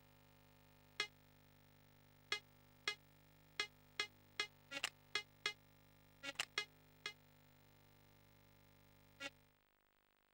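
Short electronic menu clicks sound one after another.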